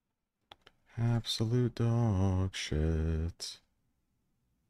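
A young man speaks with animation into a microphone, close by.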